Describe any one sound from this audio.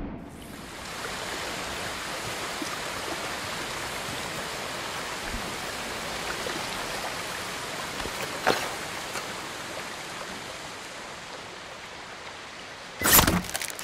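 A fire crackles steadily.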